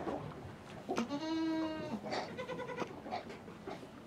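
A young goat bleats loudly.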